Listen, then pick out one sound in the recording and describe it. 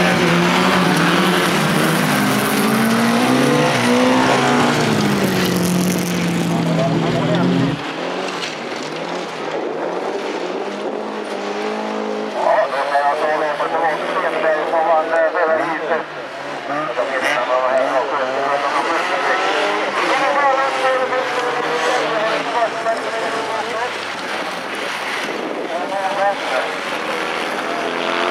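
Folkrace car engines rev hard as the cars race around a gravel track.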